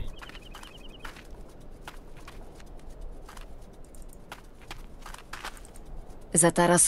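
Footsteps crunch on frozen ground.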